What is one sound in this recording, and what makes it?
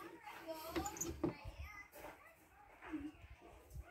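A hinged plastic panel flips over with a soft knock.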